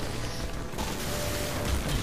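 An electric blast crackles and bursts.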